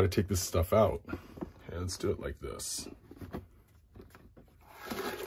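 Stiff card slides and scrapes as hands handle it.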